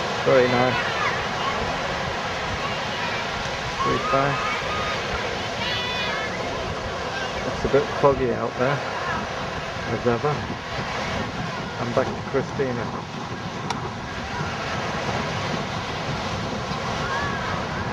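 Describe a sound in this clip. Waves wash steadily onto a shore.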